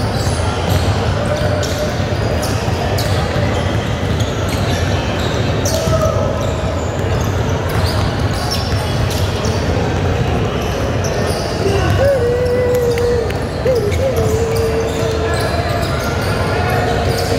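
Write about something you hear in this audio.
Young players shout and call out to each other.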